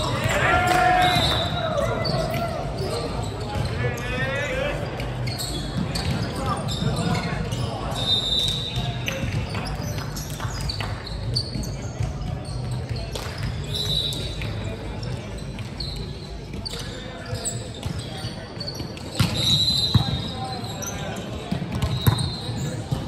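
Shoes squeak sharply on a wooden court floor.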